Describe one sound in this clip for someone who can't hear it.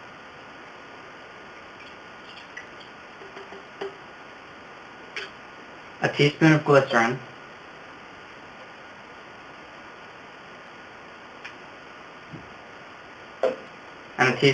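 Small objects clink softly against a metal pot.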